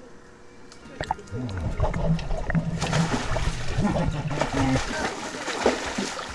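Water bubbles and gurgles underwater.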